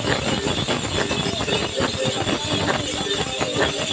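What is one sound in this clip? A middle-aged woman sings loudly and with animation, close by.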